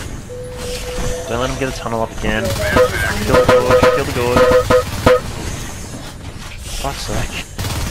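A creature shrieks and growls.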